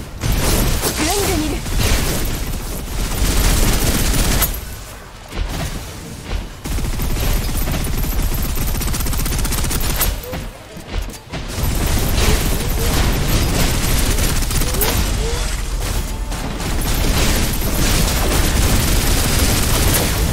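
An electric blast crackles and booms.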